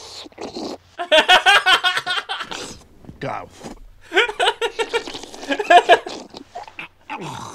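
A young woman laughs loudly and shrieks.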